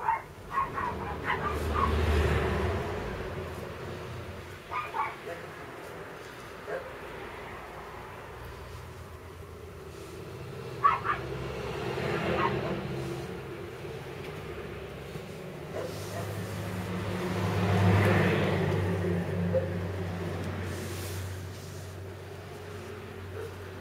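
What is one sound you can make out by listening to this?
Small puppy paws patter and scratch on soft cloth.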